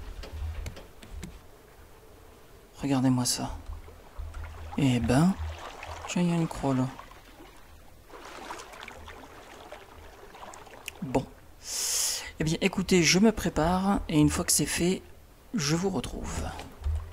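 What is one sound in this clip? Waves lap gently against wooden planks.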